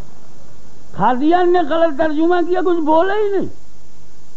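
An elderly man chants loudly into a microphone, heard through loudspeakers.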